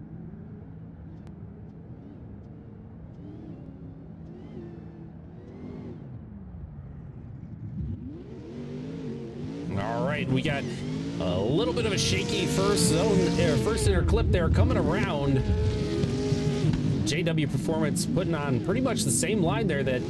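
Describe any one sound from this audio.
Two racing car engines roar and rev hard.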